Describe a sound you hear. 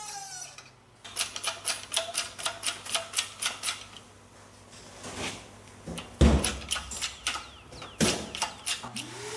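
A hydraulic jack creaks and clicks as its handle is pumped.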